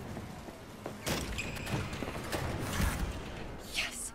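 A heavy metal door thuds as someone pushes against it.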